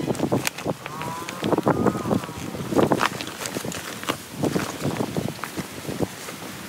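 Thin vinyl of an inflatable pool crinkles and rustles as hands handle it.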